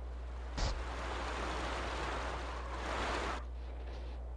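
Tyres skid on dirt in a video game.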